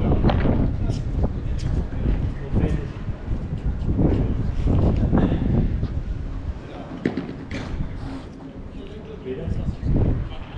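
Paddle rackets hit a ball with sharp pops.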